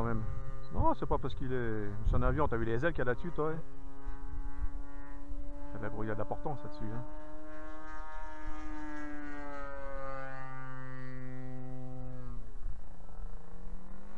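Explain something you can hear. A small model aircraft engine revs up and down close by, then hums steadily.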